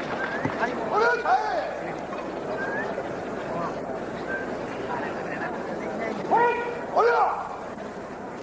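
Male kendo fencers shout sharp battle cries.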